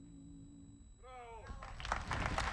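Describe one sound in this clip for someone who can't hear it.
A man sings a short, high, wavering solo phrase into a microphone.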